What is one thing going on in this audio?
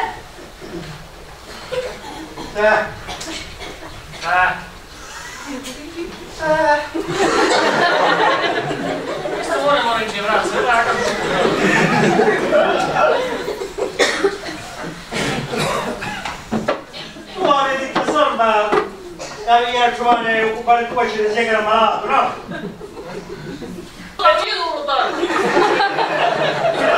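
Adult men speak loudly and expressively in a slightly echoing hall.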